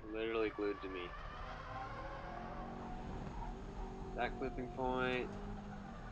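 Car tyres squeal on tarmac in short bursts.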